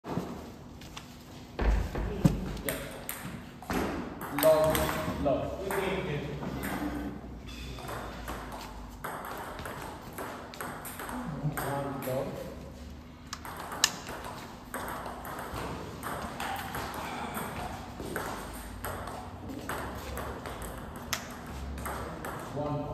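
Table tennis balls click sharply on bats and tables in an echoing hall.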